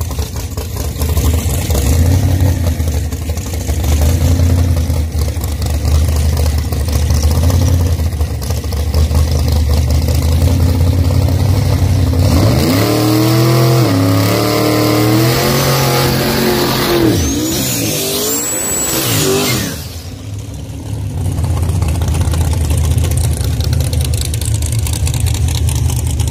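Race car engines rumble loudly at idle close by.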